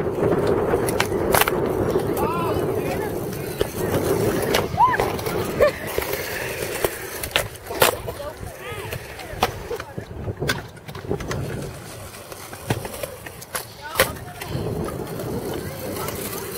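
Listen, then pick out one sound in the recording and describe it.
Skateboard wheels roll and rumble on concrete.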